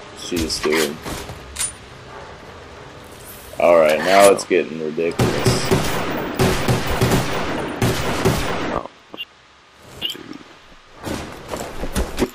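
Pistol shots bang in quick bursts.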